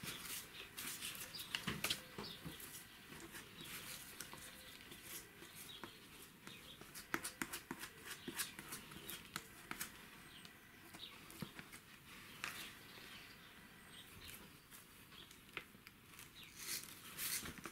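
A brush swishes and dabs across paper.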